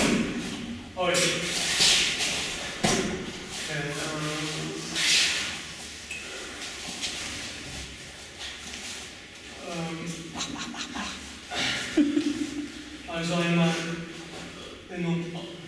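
A young man speaks loudly and firmly in an echoing room.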